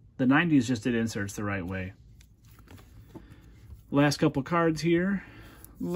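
Trading cards rustle softly as they are handled.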